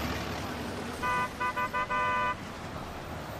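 An old car horn honks several times.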